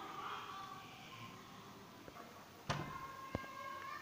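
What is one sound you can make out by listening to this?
A door latch clicks.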